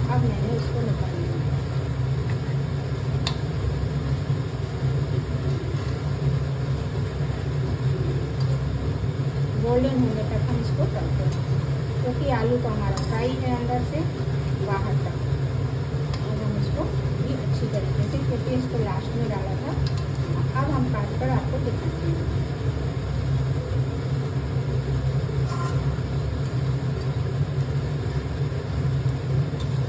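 A metal spatula clinks and scrapes against a metal pan.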